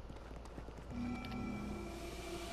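A burst of crackling energy whooshes.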